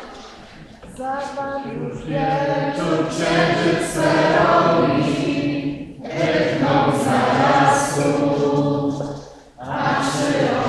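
A crowd sings together in a large echoing hall.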